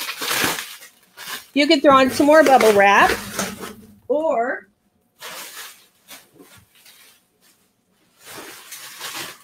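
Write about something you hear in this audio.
Plastic bubble wrap rustles and crinkles inside a cardboard box.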